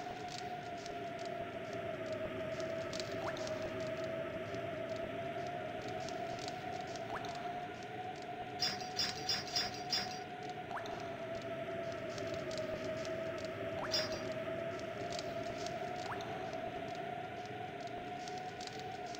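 A campfire crackles steadily.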